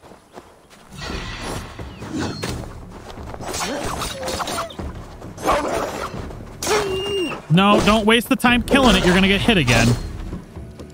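Blows and impacts thud during a fight.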